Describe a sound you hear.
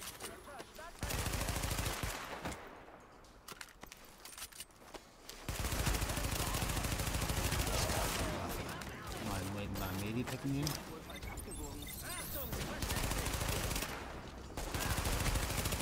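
Rifle gunfire cracks in rapid bursts.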